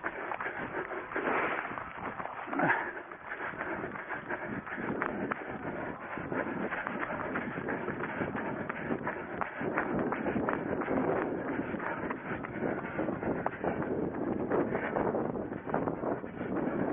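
Footsteps crunch quickly over dry grass and dirt.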